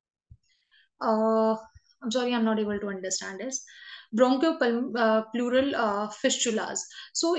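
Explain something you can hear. A young woman speaks calmly through a microphone on an online call.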